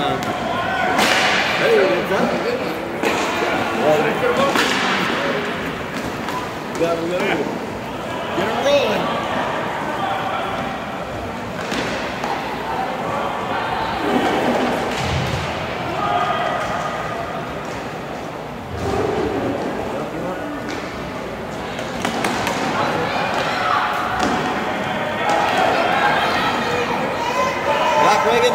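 Spectators chatter and call out in the stands.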